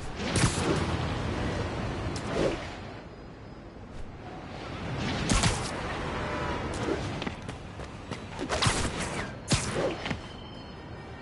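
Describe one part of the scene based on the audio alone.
Wind rushes loudly past in swooping gusts.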